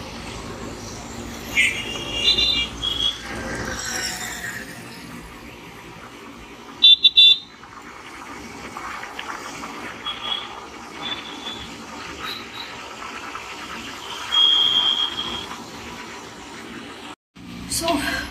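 A scooter engine hums steadily while riding.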